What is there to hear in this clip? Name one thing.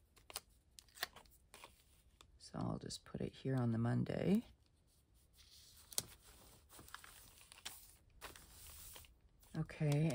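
Paper crinkles as stickers are peeled and pressed down.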